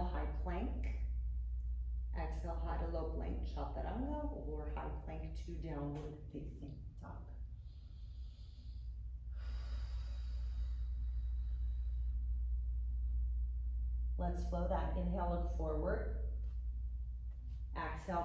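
A woman calmly gives instructions.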